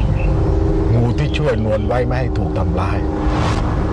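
An elderly man speaks sternly nearby.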